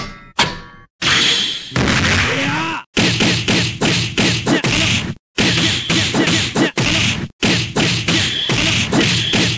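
Punches and kicks land with sharp, rapid smacks in a fighting game.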